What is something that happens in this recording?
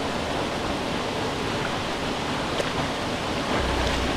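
Water splashes around legs as someone wades.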